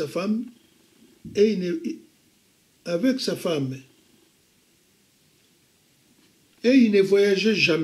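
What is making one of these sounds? An elderly man speaks calmly and expressively in short bursts with pauses, close by.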